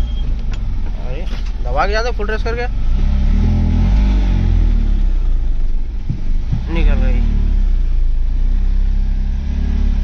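A car engine rumbles low and steadily from inside the car.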